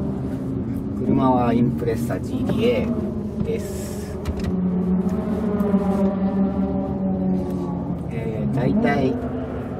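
A car engine revs up sharply a few times.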